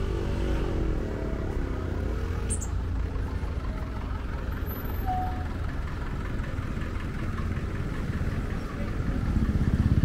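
A jeepney engine rumbles close by.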